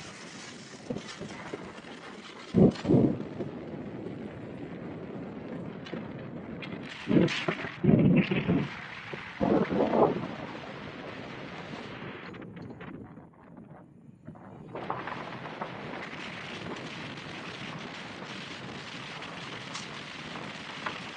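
Wind rushes and buffets loudly over a moving car's roof.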